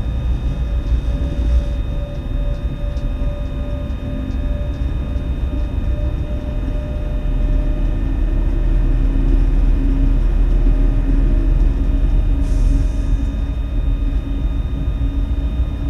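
A train rumbles steadily along the rails with a low hum.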